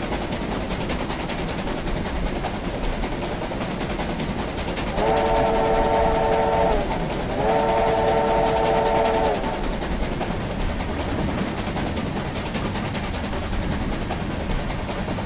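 A steam locomotive rumbles steadily along the tracks.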